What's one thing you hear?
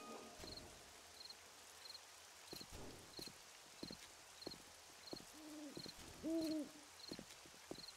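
Footsteps thud steadily on hard pavement.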